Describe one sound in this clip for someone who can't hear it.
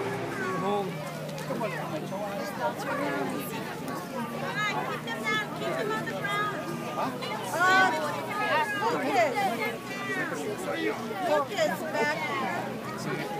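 A large crowd outdoors cheers and chatters.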